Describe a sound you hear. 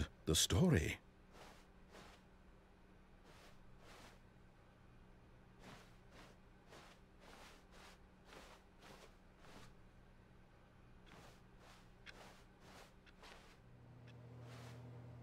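Footsteps pad steadily on a carpeted floor.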